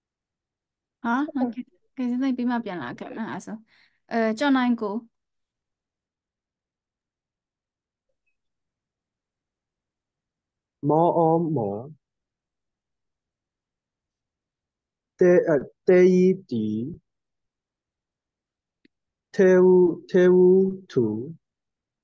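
A woman speaks clearly over an online call, sounding out syllables slowly like a teacher.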